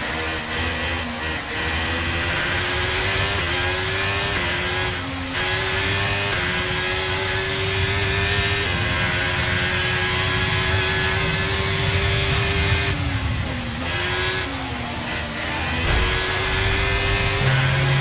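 A racing car engine screams at high revs, rising through the gears and dropping as it brakes.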